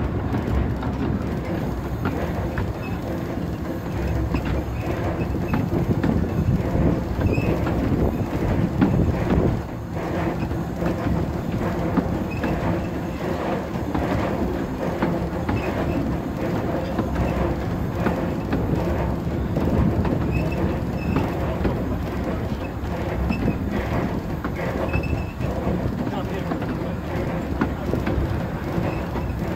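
A small steam locomotive rumbles and clatters steadily along the rails.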